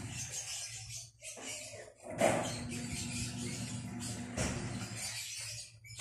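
A cat crunches dry food close by.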